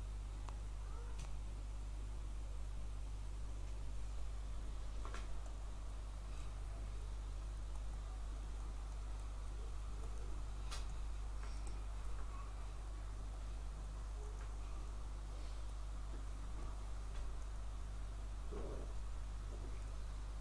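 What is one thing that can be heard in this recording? A small toy engine hums steadily.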